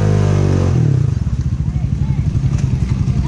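An all-terrain vehicle engine idles with a steady chugging.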